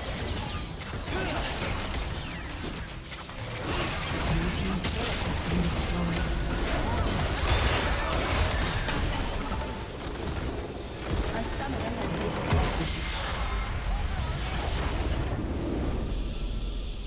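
Spell effects and weapon strikes clash rapidly in a noisy battle.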